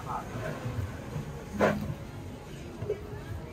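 A metal blade scrapes across a plastic board.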